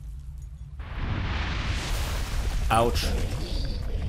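A large creature roars loudly.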